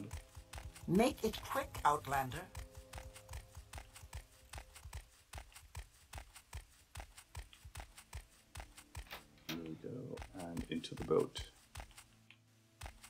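Footsteps tread steadily on a stone floor.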